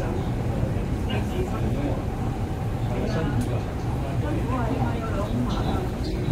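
A train rumbles steadily along the track, heard from inside a carriage.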